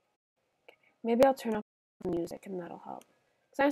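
A young woman speaks casually, close to a microphone.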